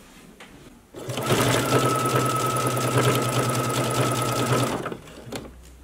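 A sewing machine whirs rapidly as it stitches.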